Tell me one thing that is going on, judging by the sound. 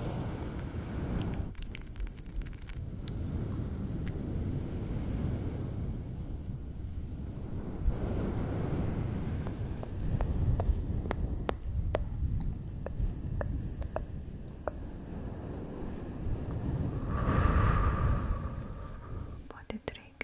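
Fingers rub and brush a furry microphone windscreen close up, with a soft rustling scratch.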